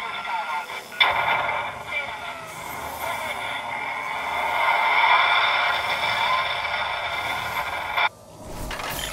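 An electronic scanning hum drones steadily.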